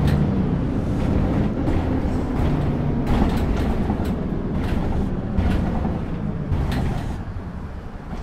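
A diesel city bus slows to a stop.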